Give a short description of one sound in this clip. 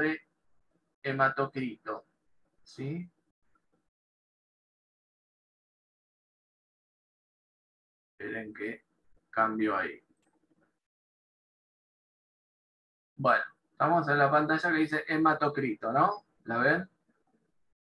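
A woman speaks calmly over an online call, in short bursts with pauses.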